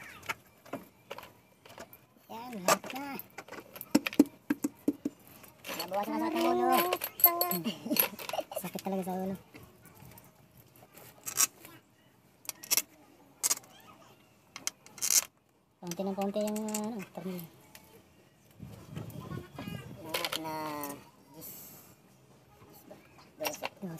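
Metal tools click and tap against engine bolts.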